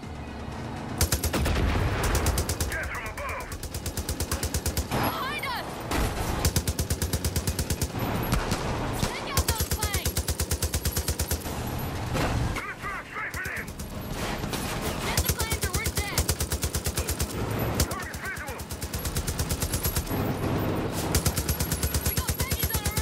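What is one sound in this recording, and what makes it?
A heavy machine gun fires long rapid bursts.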